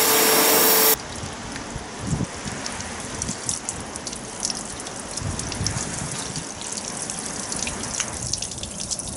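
Water from a hose spatters and patters onto a car's bonnet.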